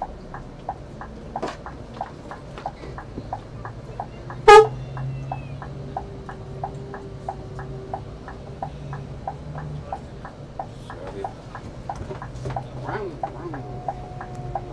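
A turn signal ticks quickly and evenly.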